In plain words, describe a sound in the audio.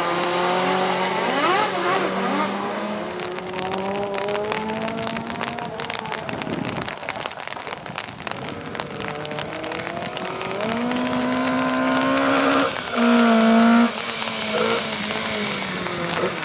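A rally car engine roars and revs hard as the car approaches.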